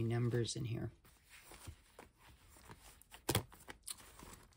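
A soft leather cover rustles and knocks as it is handled.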